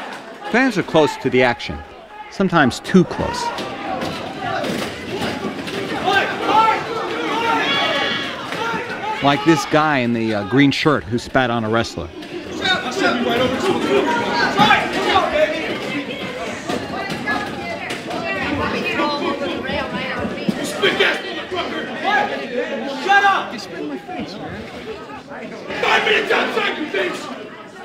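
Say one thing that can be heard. A crowd of men shouts and cheers loudly in an echoing hall.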